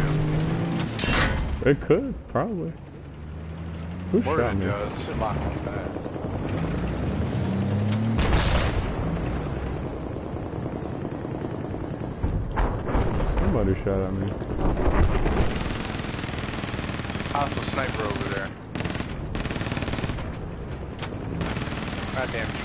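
A heavy tank engine rumbles low and steadily.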